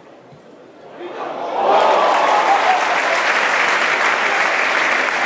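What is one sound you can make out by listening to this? A crowd cheers and roars loudly outdoors.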